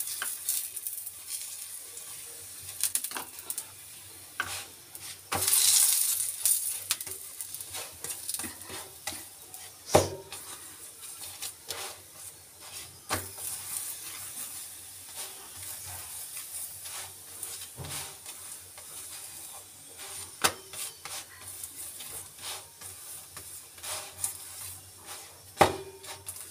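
A metal spoon scrapes and taps against a flatbread on a pan.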